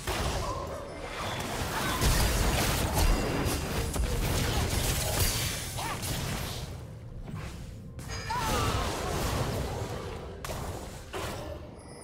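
Game spell effects whoosh and burst during a fight.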